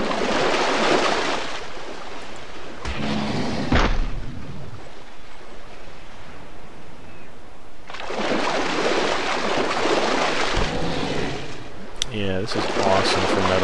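Water splashes as a large creature wades through it.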